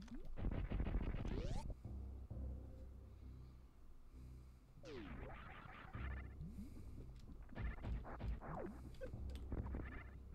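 A video game explosion booms.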